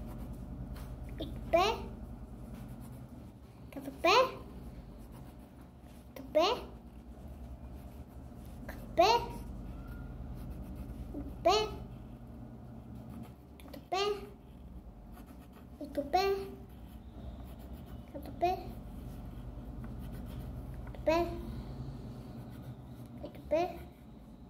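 A crayon scratches on paper.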